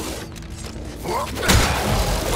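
A creature lets out a harsh, rising shriek.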